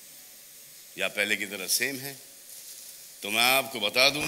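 A middle-aged man speaks.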